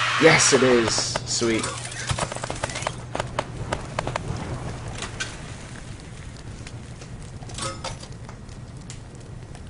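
Flames crackle steadily.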